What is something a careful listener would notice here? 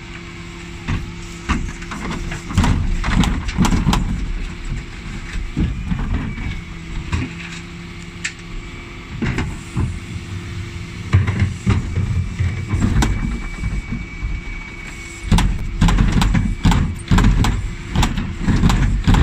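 Plastic wheelie bins thud and rattle against metal.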